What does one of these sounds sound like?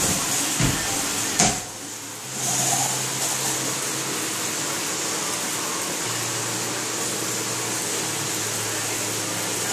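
Water jets spray hard against a glass panel.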